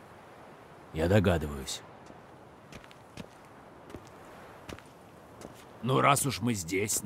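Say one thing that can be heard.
A man speaks in reply in a deep, steady voice.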